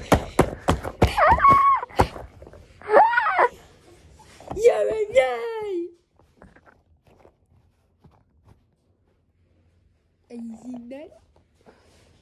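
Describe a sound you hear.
A young child talks in a squeaky, playful voice close by.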